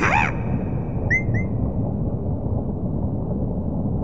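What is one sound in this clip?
A game dice block is hit with a bright pop.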